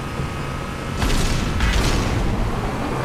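A mounted machine gun fires a rapid burst.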